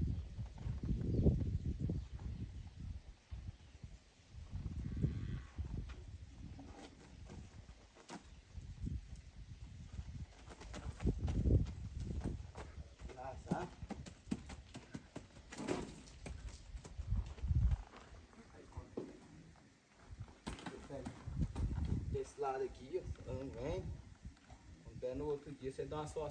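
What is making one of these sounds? A horse's hooves thud and shuffle on soft dirt.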